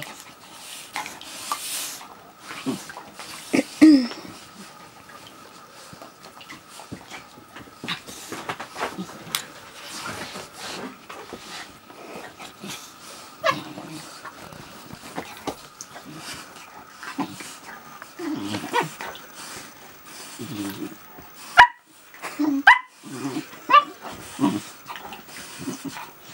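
Two dogs growl playfully while wrestling.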